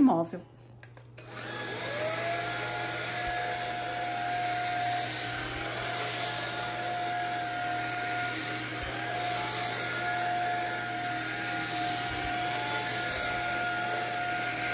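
A cordless vacuum cleaner whirs steadily over carpet.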